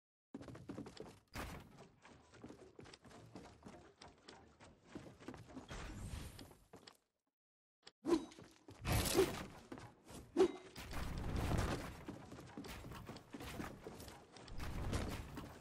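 Wooden panels clack and thud into place in quick succession.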